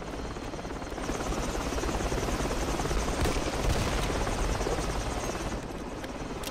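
A helicopter roars close by with thudding rotor blades.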